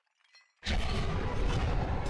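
A magical spell bursts with a loud shimmering whoosh.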